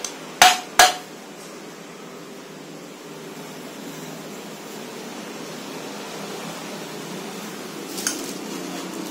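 A heavy metal object knocks sharply against a hard surface.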